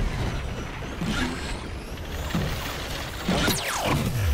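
Flames whoosh behind a rolling ball.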